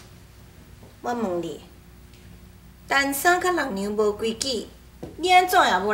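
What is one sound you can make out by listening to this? A middle-aged woman speaks in a stern, drawn-out voice.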